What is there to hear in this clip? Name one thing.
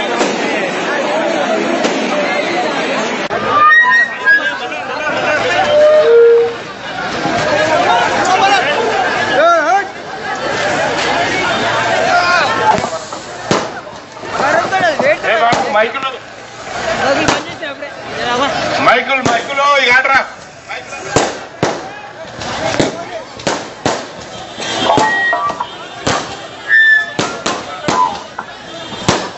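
A crowd of men shouts and talks loudly outdoors.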